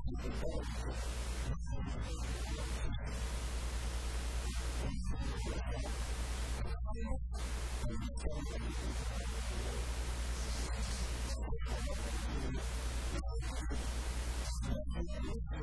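A middle-aged man speaks forcefully into a microphone, heard through loudspeakers in an echoing room.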